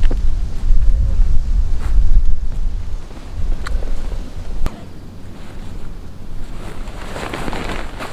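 Fabric rustles as a man shifts in a hammock.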